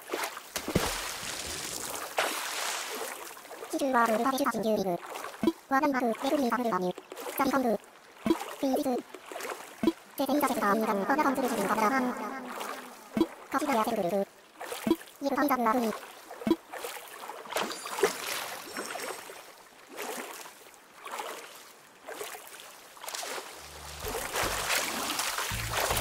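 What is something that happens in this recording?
Water splashes and swishes as a swimmer paddles along.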